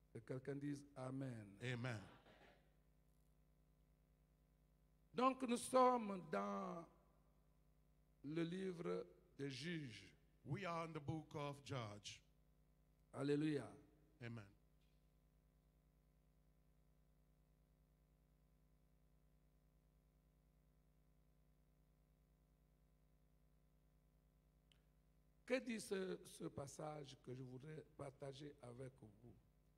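An elderly man speaks slowly and deliberately into a microphone, heard through a loudspeaker, with long pauses.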